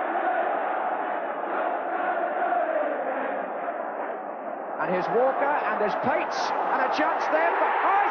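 A large stadium crowd roars steadily.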